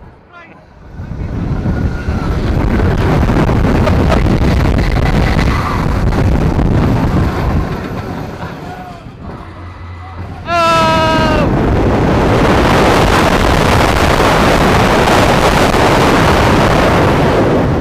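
Wind roars loudly past a fast-moving ride.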